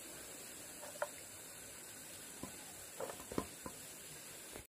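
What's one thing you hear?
Dry peanuts click and rattle.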